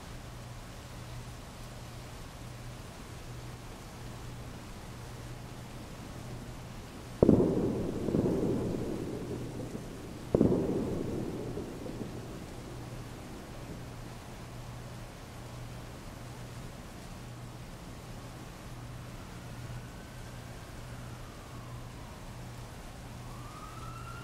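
Heavy rain pours steadily onto a wet street.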